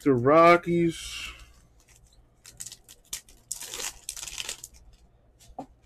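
A foil trading card pack crinkles as it is torn open.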